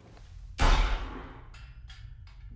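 A heavy metal door clangs shut with a ringing echo.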